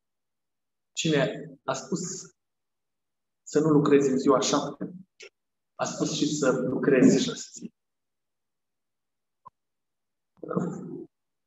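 A middle-aged man speaks calmly and clearly into a microphone, in phrases with pauses.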